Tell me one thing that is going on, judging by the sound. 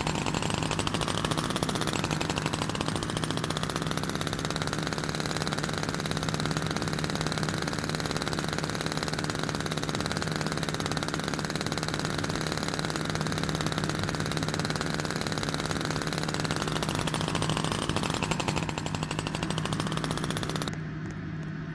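A small kart engine hums and whines steadily as it drives.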